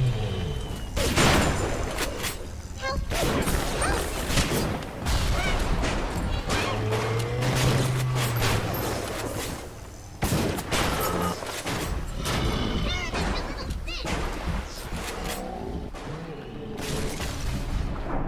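A shotgun fires with loud booming blasts.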